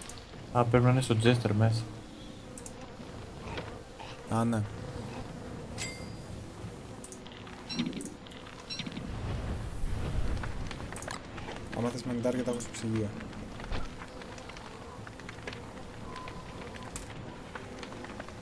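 A campfire crackles softly.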